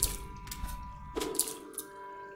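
A sword slashes with sharp swishing hits.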